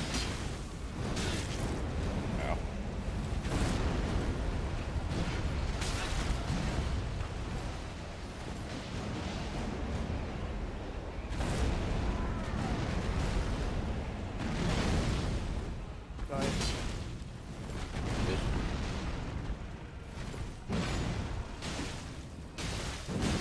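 Heavy sword swings whoosh through the air.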